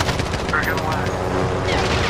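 A helicopter's rotor whirs nearby.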